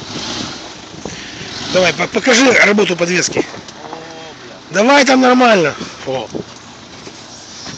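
A car engine idles and rumbles.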